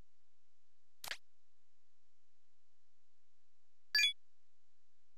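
Short electronic menu beeps sound.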